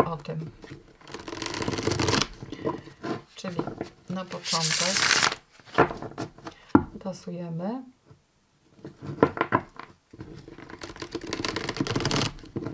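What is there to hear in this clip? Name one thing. Playing cards are riffle shuffled with a quick whirring flutter.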